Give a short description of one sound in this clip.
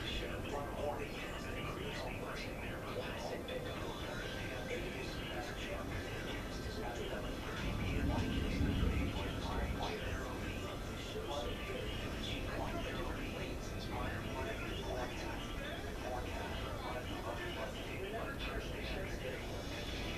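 Rain patters steadily against a window.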